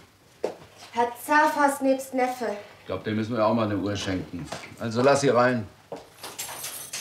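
A woman speaks from across the room.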